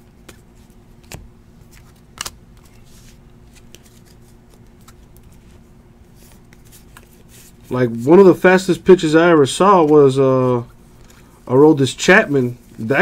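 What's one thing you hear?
Cards rustle and slide against each other in hands.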